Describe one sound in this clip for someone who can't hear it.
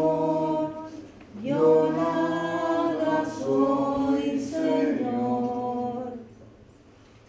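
A man sings loudly nearby.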